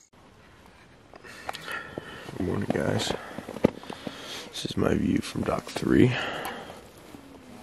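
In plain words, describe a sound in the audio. A man talks calmly and quietly, close by.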